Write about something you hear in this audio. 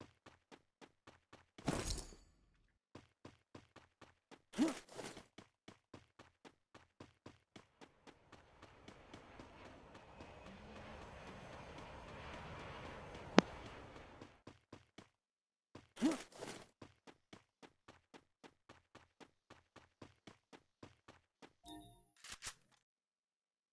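Footsteps run quickly and steadily over the ground.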